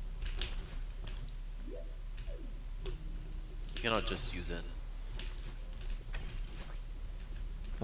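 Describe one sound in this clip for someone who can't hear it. Short electronic game sound effects chirp and whoosh.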